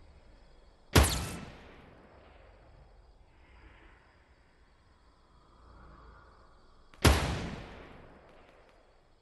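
A sniper rifle fires with a loud crack that echoes away.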